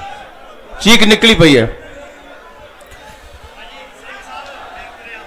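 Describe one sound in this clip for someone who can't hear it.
A man shouts loudly into a microphone through a loudspeaker.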